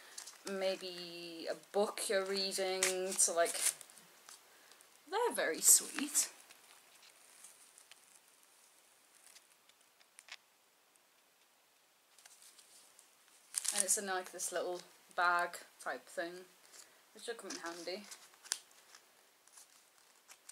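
Paper and foil packaging crinkles and tears.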